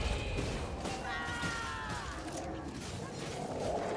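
A fiery explosion bursts and crackles.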